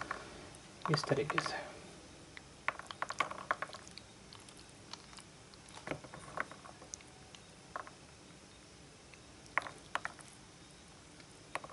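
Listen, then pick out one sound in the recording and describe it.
Pomegranate seeds drop and tap onto a wooden board.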